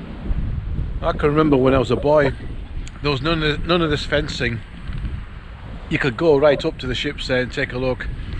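An elderly man talks calmly and close to the microphone.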